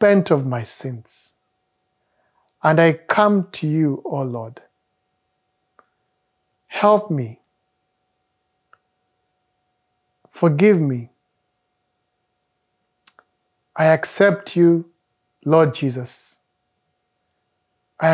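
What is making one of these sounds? A man speaks slowly and calmly into a close microphone, in short phrases with pauses.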